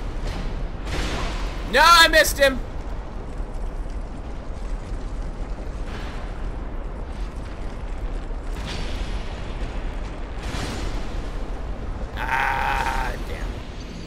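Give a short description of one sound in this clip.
Metal weapons strike and clang in a fight.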